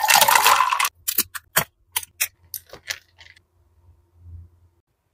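A chocolate shell cracks inside a plastic cup.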